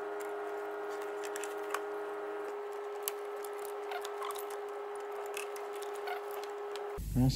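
Tools clink and knock against engine parts.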